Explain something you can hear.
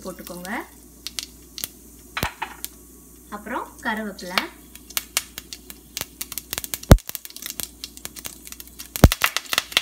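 Seeds crackle and pop in hot oil.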